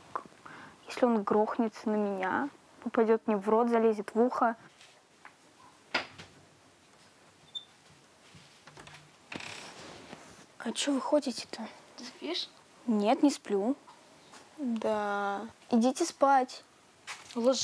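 A young woman speaks softly and emotionally nearby.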